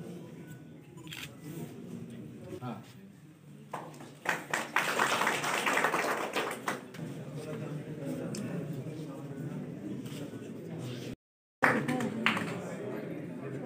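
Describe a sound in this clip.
Men and women chatter nearby.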